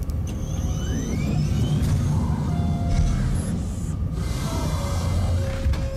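A heavy hatch slides open with a mechanical whir.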